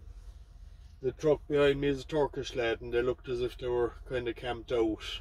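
A man talks up close, calmly.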